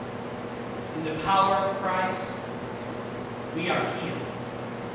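A man speaks slowly and calmly through a microphone in an echoing hall.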